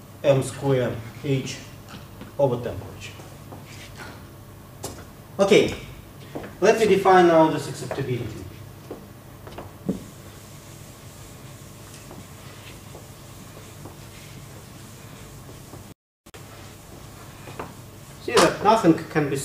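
An elderly man lectures through a microphone.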